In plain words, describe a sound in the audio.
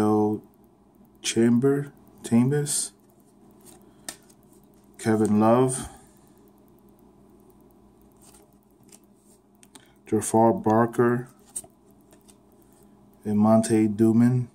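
Cardboard trading cards slide and rustle against each other as they are shuffled by hand.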